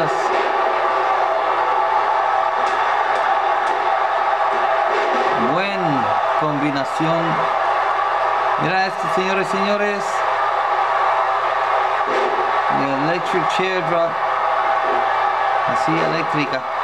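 A large arena crowd roars.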